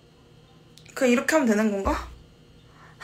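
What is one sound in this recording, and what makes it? A woman exclaims close by in a high, playful voice.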